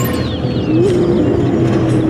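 Jet engines roar past overhead.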